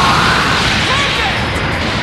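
Rocks crash and clatter as debris flies.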